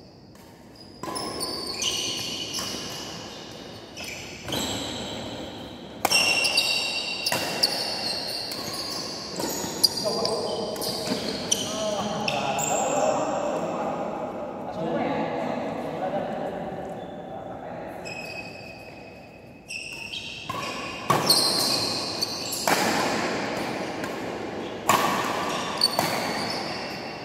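Badminton rackets smack a shuttlecock back and forth in an echoing hall.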